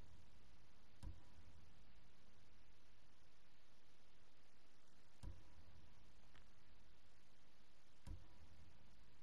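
A soft menu click sounds each time a selection changes.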